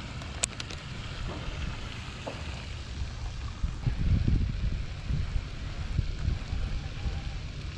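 A fishing reel clicks and whirs as the line is wound in.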